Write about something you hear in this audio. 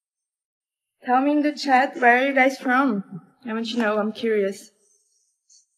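A young woman speaks close up, calmly and casually.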